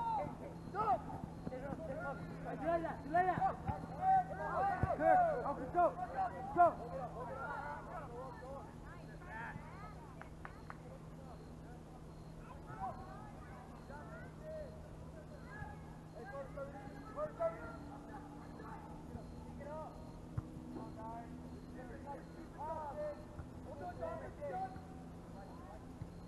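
Players shout and call out across an open field outdoors, heard from a distance.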